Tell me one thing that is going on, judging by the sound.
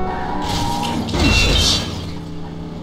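A car crashes loudly into another car with a metallic crunch.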